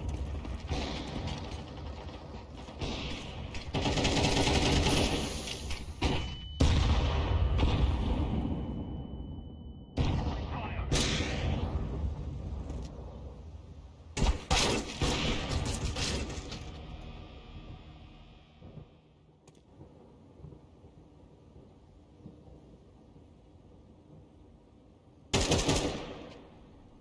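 Rifles fire in rapid bursts nearby.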